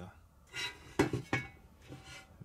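A metal stand knocks against a hard surface.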